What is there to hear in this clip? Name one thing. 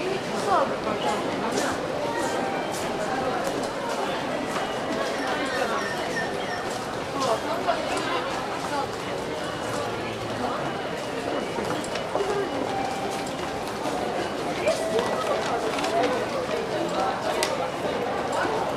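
A crowd murmurs and chatters all around in a large echoing hall.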